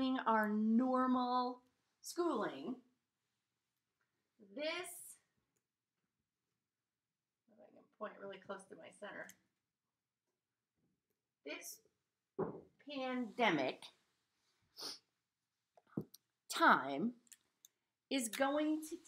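A middle-aged woman talks with animation close to the microphone, pausing now and then.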